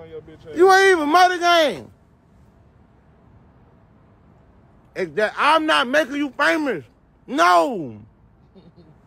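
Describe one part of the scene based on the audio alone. A young man speaks loudly and animatedly close to a phone microphone, in short bursts.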